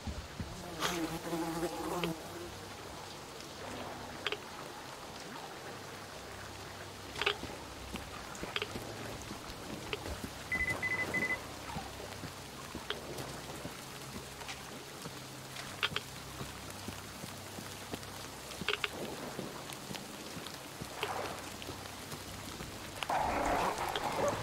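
A young woman talks quietly close to a microphone.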